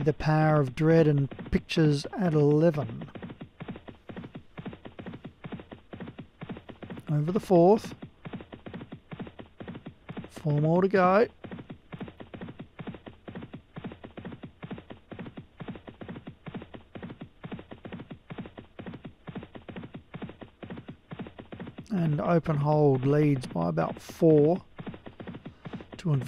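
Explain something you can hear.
Horses' hooves gallop in a fast, steady drumming rhythm.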